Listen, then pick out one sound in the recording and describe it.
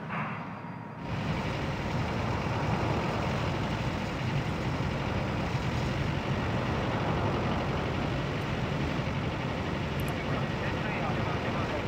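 Jet engines roar steadily as an airliner rolls down a runway.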